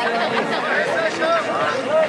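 An elderly man calls out loudly.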